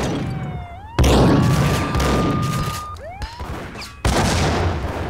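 A pump-action shotgun fires with a loud echoing boom.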